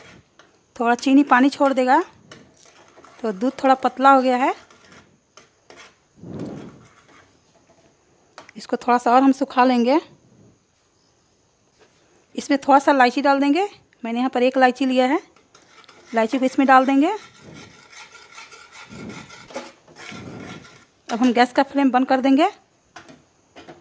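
A spatula scrapes and stirs liquid in a metal pan.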